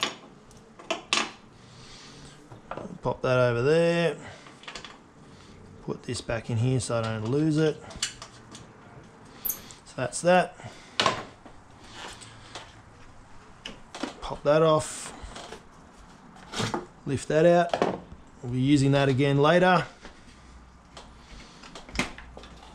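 Plastic engine parts knock and clack as they are handled.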